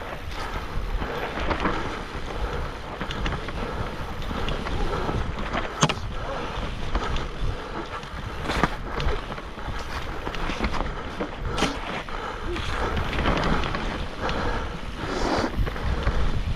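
Bike tyres roll and crunch over leaves and dirt.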